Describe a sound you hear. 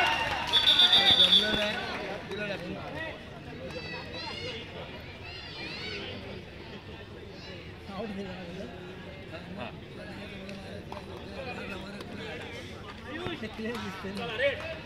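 A crowd chatters and cheers loudly outdoors.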